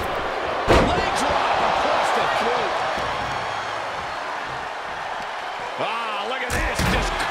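A wrestler slams onto the ring mat with a loud thud.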